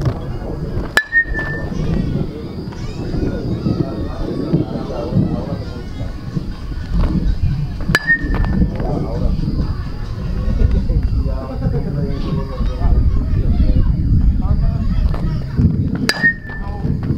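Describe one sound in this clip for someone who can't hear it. A baseball bat cracks against a pitched ball.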